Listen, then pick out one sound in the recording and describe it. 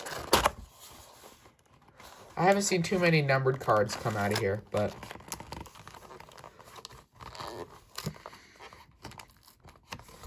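A cardboard lid scrapes as it slides off a box.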